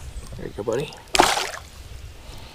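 A fish splashes as it is let go into the water.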